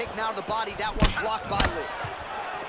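A kick thuds against a body.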